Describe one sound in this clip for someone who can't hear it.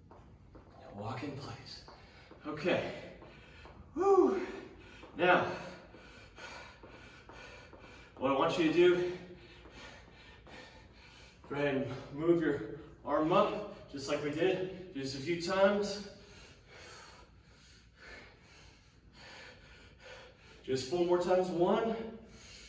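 A young man speaks calmly and clearly to the listener in a large echoing hall.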